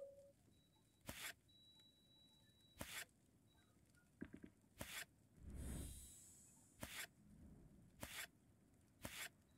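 Game pieces click into place with short swooshing effects.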